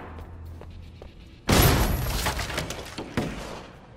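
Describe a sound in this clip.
Double doors swing open.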